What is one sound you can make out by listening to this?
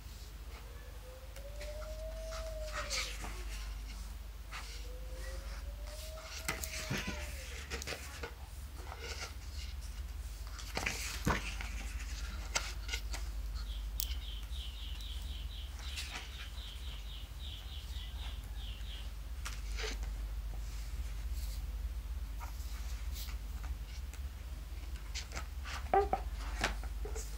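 Pages of a book rustle as hands turn them.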